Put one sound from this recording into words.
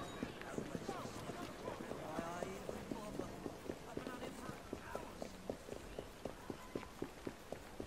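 Footsteps run quickly over cobblestones.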